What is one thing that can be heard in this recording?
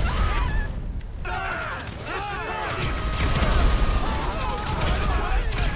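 A gun fires several shots.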